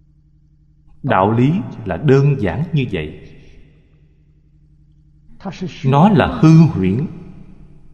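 An elderly man speaks calmly and warmly into a microphone, in short phrases with pauses.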